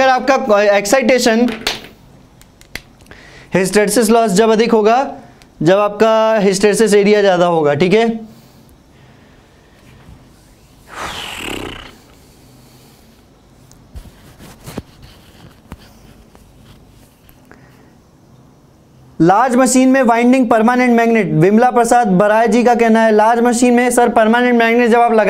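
A young man speaks calmly and clearly into a close microphone, pausing now and then.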